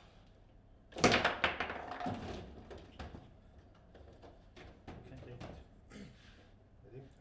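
Foosball rods clatter as players spin and slide them.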